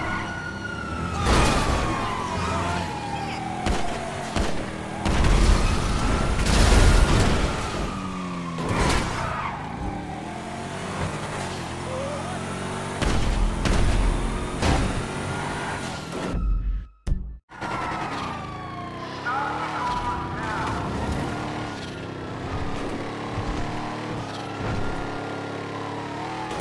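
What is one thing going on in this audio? A car engine roars and revs steadily as it speeds along.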